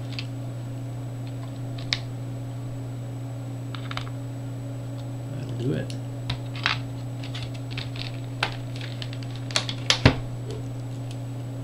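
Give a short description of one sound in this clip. Small metal screws and a screwdriver click and tick against a hard case.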